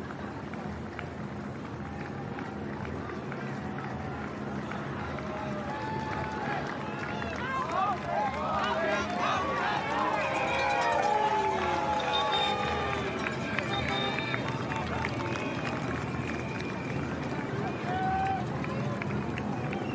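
A crowd of spectators cheers and whistles outdoors.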